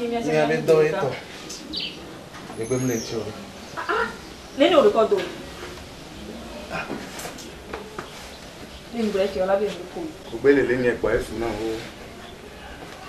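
A woman speaks loudly and angrily nearby.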